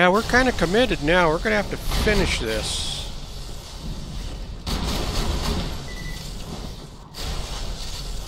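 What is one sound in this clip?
Electricity crackles and buzzes in a sparking arc.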